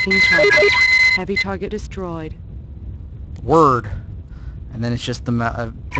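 A laser beam hums as it fires.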